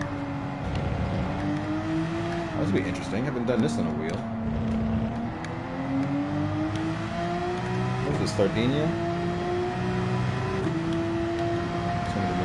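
A racing car engine roars, its pitch climbing and dropping sharply as it shifts down and back up through the gears.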